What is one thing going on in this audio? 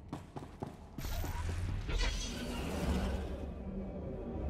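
A shimmering energy whoosh swells and fades.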